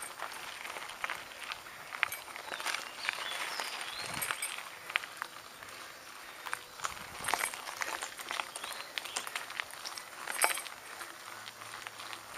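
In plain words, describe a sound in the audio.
A bicycle frame clatters and knocks over bumps.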